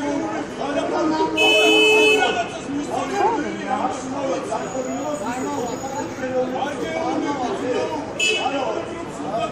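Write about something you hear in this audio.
A crowd of men and women shout and argue in the street below, heard from above.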